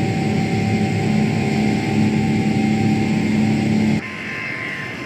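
Jet engines hum steadily, heard from inside a cockpit.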